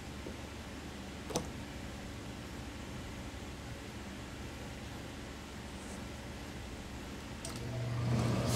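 A hand smooths and rubs fabric on a table.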